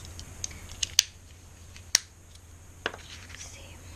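A plastic stamping block taps and clicks on a table.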